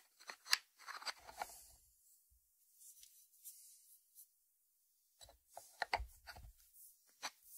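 A ceramic lid scrapes and clinks against its dish.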